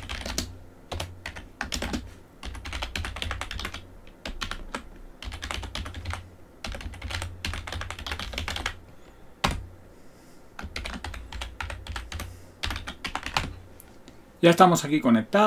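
Keys clack quickly on a computer keyboard.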